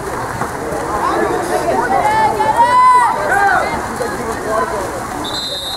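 Young people shout and call out across the water outdoors.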